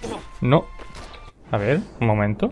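Punches and blows thud in a video game fight.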